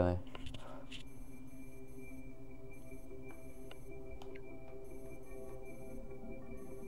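A steady electronic tone hums, layered with a faint high whine.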